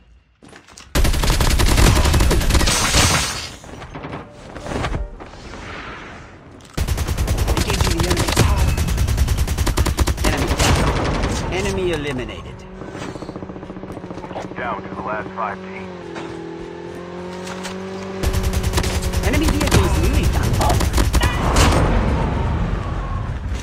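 Rapid bursts of gunfire ring out close by.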